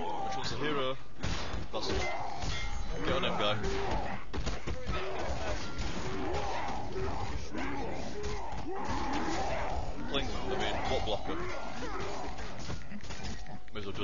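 Spells burst and crackle in a game battle.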